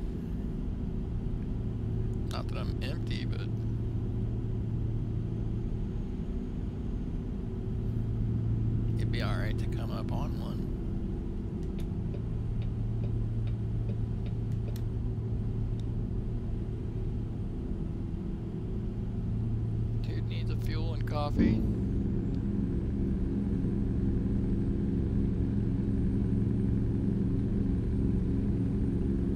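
A truck engine drones steadily at low pitch while driving.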